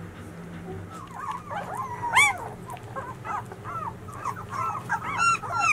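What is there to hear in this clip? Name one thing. Newborn puppies whimper and squeak in high, rapid little cries.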